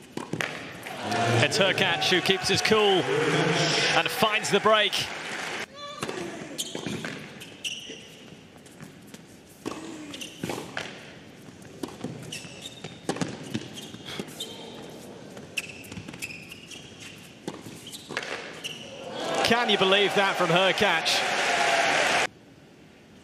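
A large crowd cheers and applauds loudly in a big hall.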